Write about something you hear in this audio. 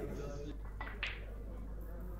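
A cue strikes a snooker ball with a sharp click.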